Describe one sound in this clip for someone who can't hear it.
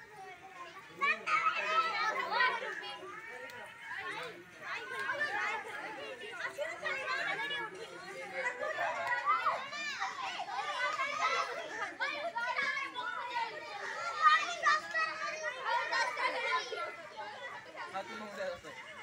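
Young women laugh and cheer close by.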